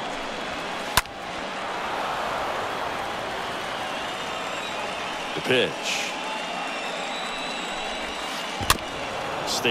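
A baseball smacks into a catcher's mitt with a sharp pop.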